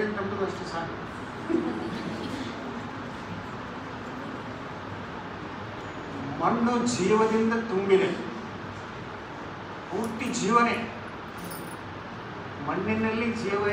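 An elderly man speaks calmly into a microphone, heard through a loudspeaker in an echoing hall.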